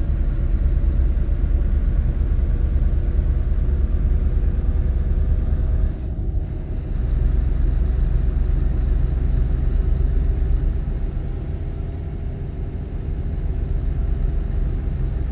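Tyres roll on a highway.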